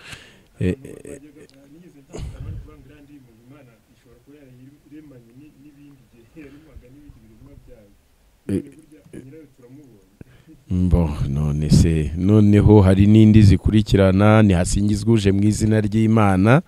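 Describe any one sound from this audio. An older man speaks calmly into a microphone, close by.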